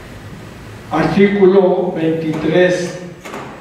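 An elderly man reads out calmly through a microphone.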